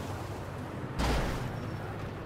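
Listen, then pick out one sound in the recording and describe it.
A car crashes with a loud thud.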